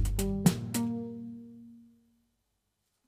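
Electric keyboard chords are struck hard and ring out slowly.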